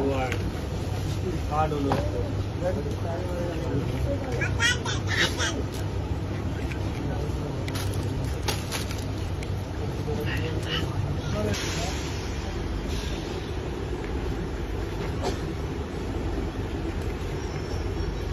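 Scissors snip at soft plastic, now and then.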